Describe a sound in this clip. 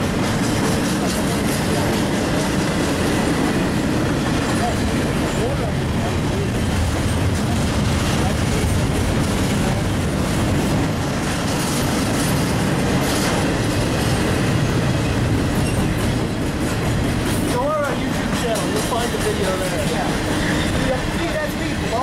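A freight train rumbles past close by, wheels clattering on the rails.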